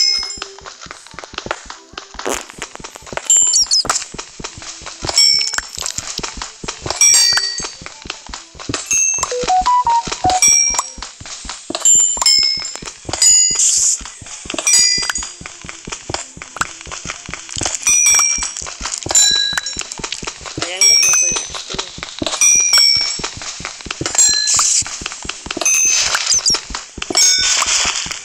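Stone blocks break with a crumbling crunch in a game.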